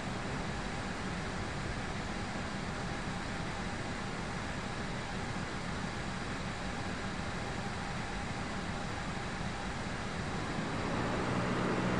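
A jet engine hums steadily and grows louder near the end.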